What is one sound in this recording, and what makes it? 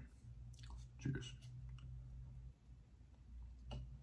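A man sips a drink.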